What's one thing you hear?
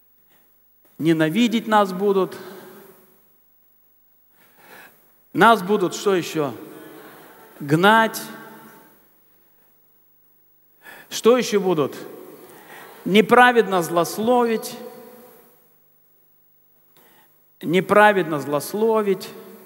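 A middle-aged man speaks with animation through a headset microphone in a reverberant hall.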